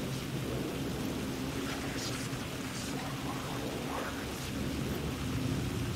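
Rain falls steadily outdoors.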